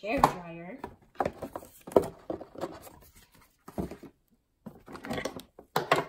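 Cardboard packaging rustles and thumps as a box is unpacked.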